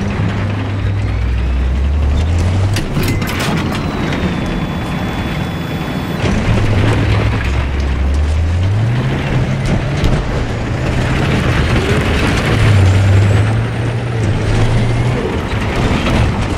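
A tank engine rumbles and roars as the vehicle drives.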